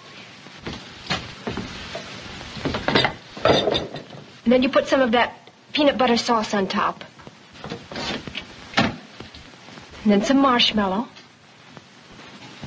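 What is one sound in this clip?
Glasses clink.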